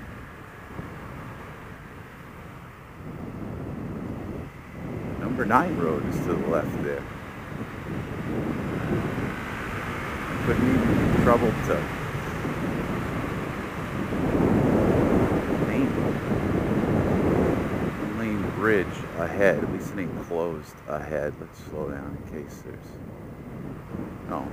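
A motorcycle engine hums and revs up and down while riding.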